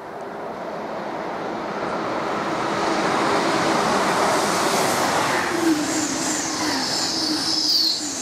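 A high-speed train rushes past at close range with a loud roar.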